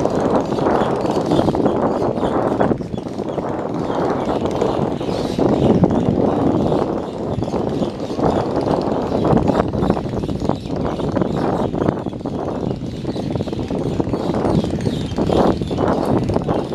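Water churns and splashes against a passing ferry's hull.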